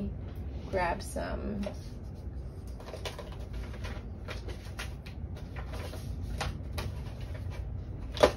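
A hand rubs a sticker flat onto paper.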